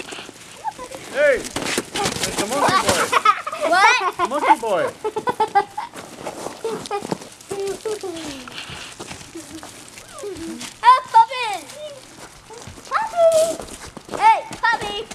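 Puppies whine and yelp close by, in high, rising and falling cries.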